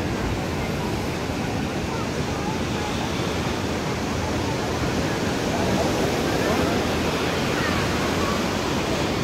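A large crowd chatters outdoors in a steady murmur.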